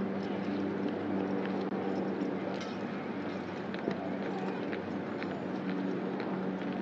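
Boots strike the pavement in step as a small group marches outdoors.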